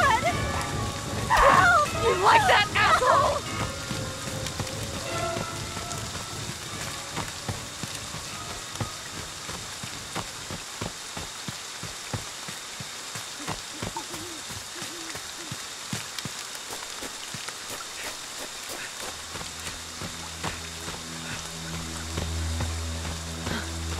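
Footsteps run quickly through rustling undergrowth and over dirt.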